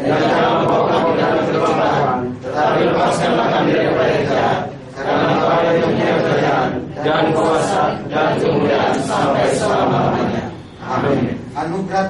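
A group of men and women chant together in unison close by, pausing briefly between phrases.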